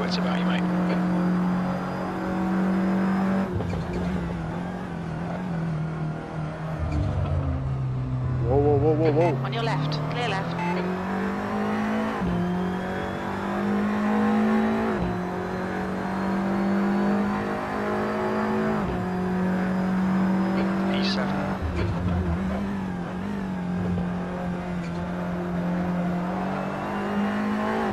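A racing car engine roars steadily, rising in pitch and dropping sharply with each gear change.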